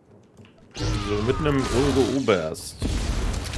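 A man talks into a microphone.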